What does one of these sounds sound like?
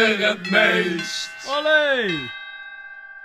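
Young men shout with excitement close by.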